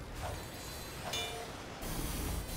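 A wrench clangs against metal.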